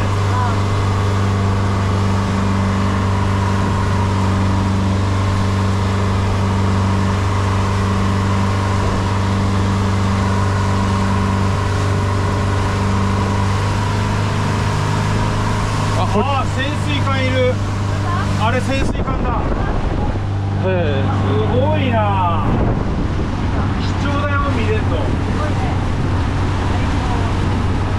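Water rushes and splashes against a moving hull.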